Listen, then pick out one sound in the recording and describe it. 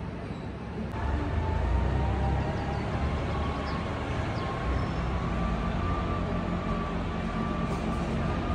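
A machine hums steadily in the distance.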